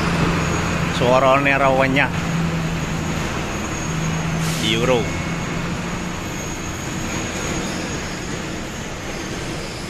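A truck engine rumbles as the truck drives slowly away.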